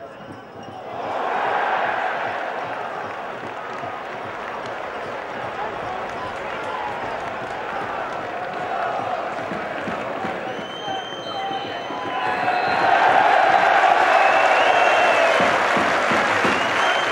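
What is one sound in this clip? A large stadium crowd erupts in a loud, sustained roar of cheering.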